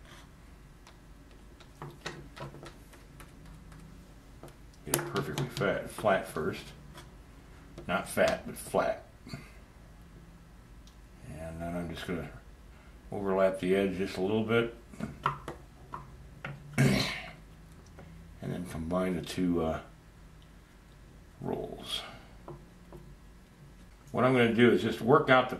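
A small metal tool scrapes and taps on wood.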